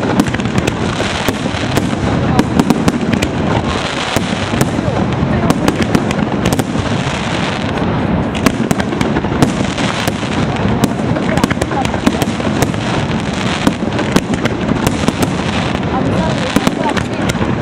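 Fireworks fizz and sparkle steadily.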